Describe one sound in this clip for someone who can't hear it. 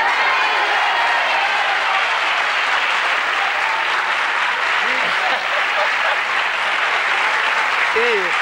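A middle-aged woman laughs heartily into a microphone.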